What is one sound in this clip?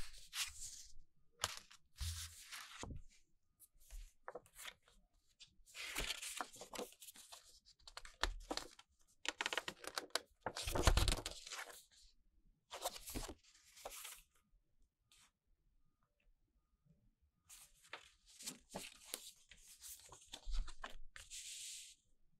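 Paper rustles and crinkles as hands handle a folded poster.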